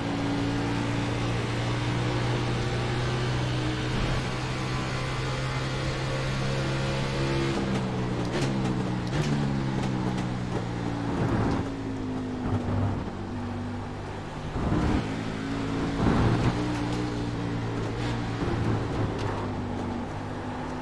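A race car engine roars steadily and shifts pitch as it changes gear.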